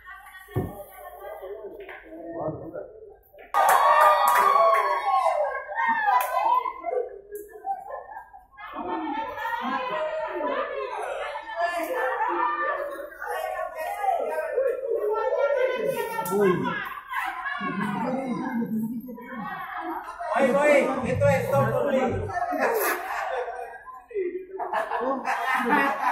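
A crowd of men and women chatter loudly nearby.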